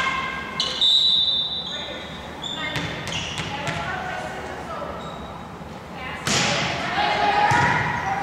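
Shoes squeak sharply on a gym floor, echoing in a large hall.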